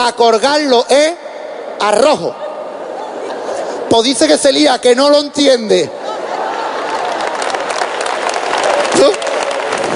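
An audience laughs heartily in a large hall.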